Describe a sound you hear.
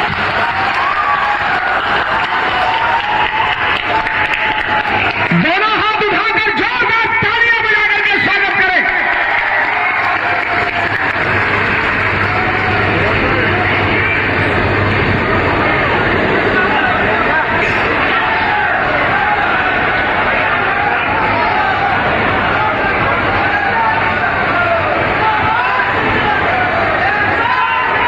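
A crowd chatters and murmurs in a large echoing tent.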